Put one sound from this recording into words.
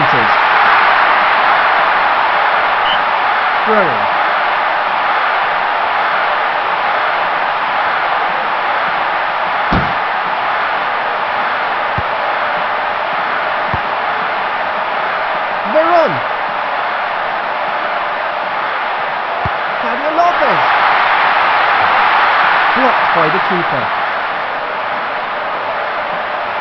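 A stadium crowd roars steadily throughout.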